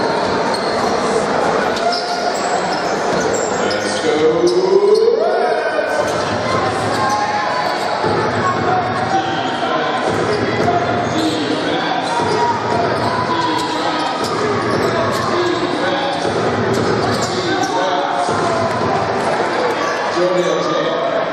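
A large crowd murmurs and cheers in a big echoing hall.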